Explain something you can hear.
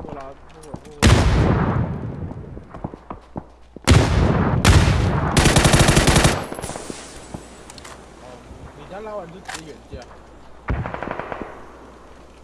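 Grenades explode nearby with loud, deep booms.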